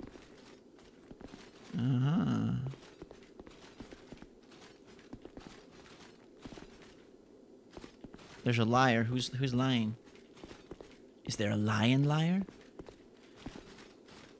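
Footsteps tap lightly on stone.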